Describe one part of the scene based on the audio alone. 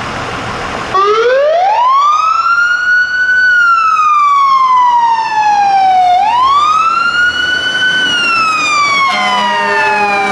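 A siren wails loudly, rising and falling slowly.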